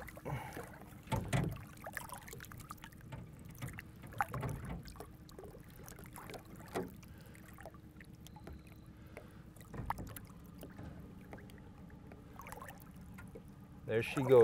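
Water splashes against a fish as it is lowered in.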